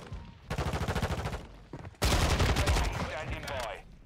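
Rapid automatic gunfire bursts loudly.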